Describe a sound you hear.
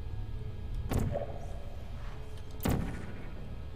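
A device fires with a sharp electric zap.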